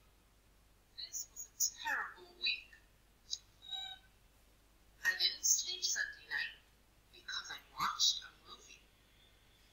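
A young boy speaks glumly, close by.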